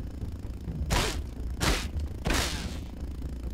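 Heavy blows strike a buzzing insect.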